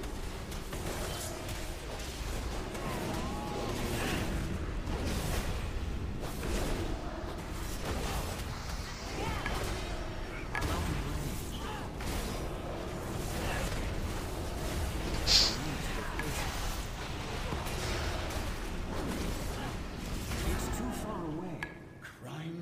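Weapons clash and strike in combat.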